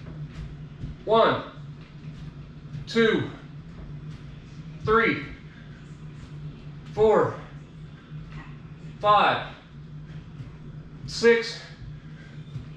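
A man calls out short counts every two seconds, close by.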